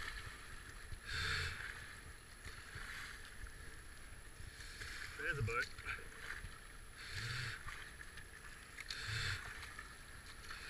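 A paddle splashes into the water in strokes.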